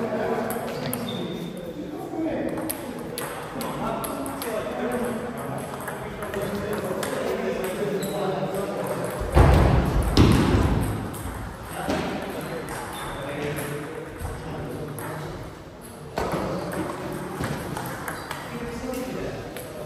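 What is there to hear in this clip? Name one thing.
Men talk casually in a large echoing hall.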